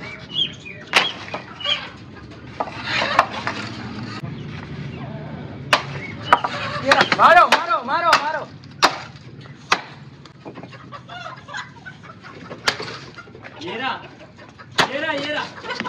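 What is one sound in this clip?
A wooden stick knocks sharply against a block.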